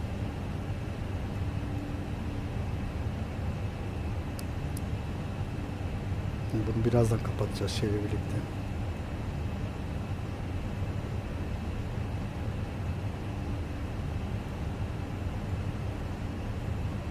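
A steady low hum of aircraft engines drones throughout.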